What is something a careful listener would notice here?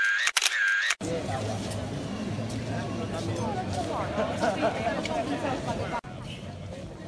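A crowd chatters nearby.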